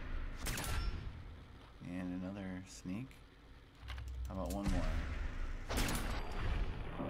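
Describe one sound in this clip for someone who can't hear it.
Shotgun blasts boom in quick bursts.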